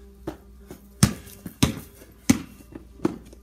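A basketball clangs off a hoop's rim and backboard.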